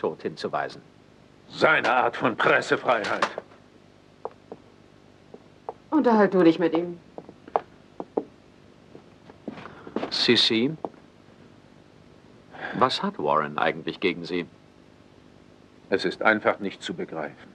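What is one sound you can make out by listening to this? A middle-aged man speaks in a tense, raised voice, with pauses.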